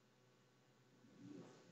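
Thick fur fabric rustles close by as someone turns around.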